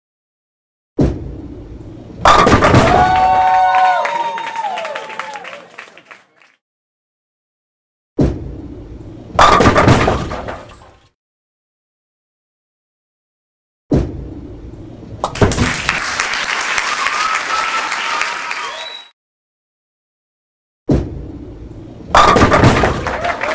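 A game's bowling ball rolls down a lane.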